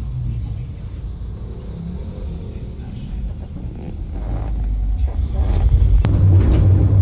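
A vehicle engine hums low and steady.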